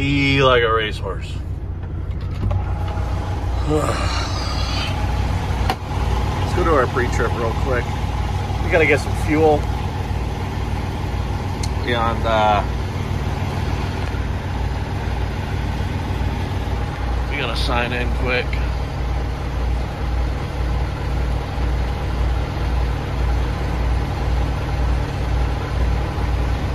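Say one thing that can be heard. A diesel truck engine idles with a steady low throb.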